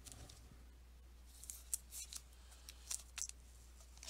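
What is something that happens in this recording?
A plastic card sleeve rustles and crinkles as a card slides into it.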